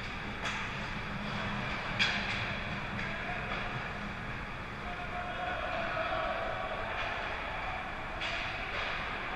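Hockey sticks and a puck clack sharply on the ice.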